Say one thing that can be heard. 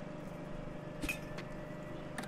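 A heavy bag thuds into a metal bin.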